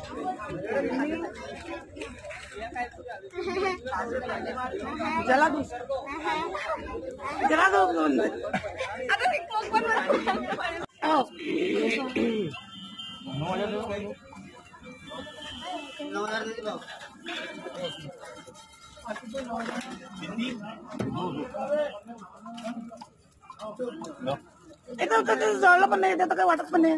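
Several young men and women chatter and laugh close by.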